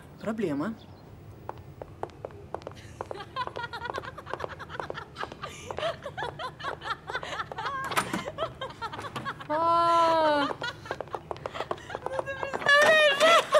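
Women's heels click as they walk along a corridor.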